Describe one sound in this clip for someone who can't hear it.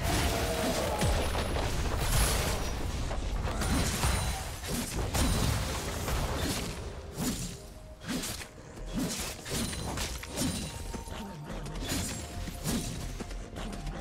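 Spell blasts and hits crackle and thump in a busy fight.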